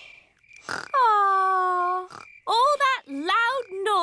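A baby squeals and babbles in a high voice.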